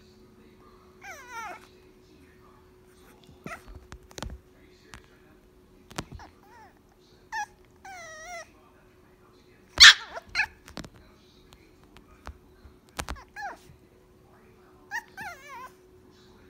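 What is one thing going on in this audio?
A puppy whines and yips in short, high cries.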